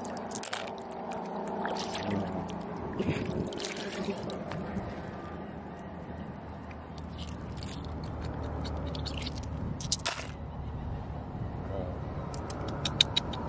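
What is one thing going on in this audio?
Shallow water laps and trickles steadily.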